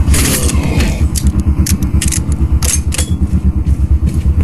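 A rifle bolt clacks as it is worked and reloaded.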